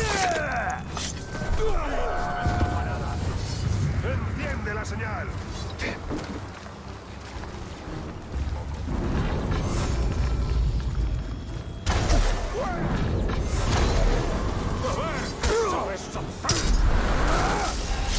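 Blades clash and strike in a close fight.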